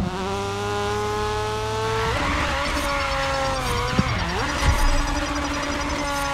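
A racing car engine revs high and shifts gear.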